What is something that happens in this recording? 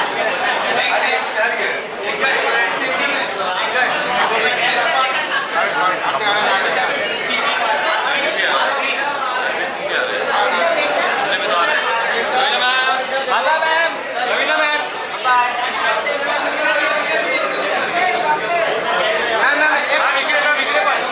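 Several men call out and talk loudly over each other nearby.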